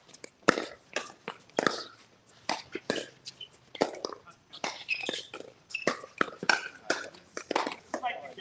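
Paddles pop sharply against a plastic ball in a quick rally, outdoors.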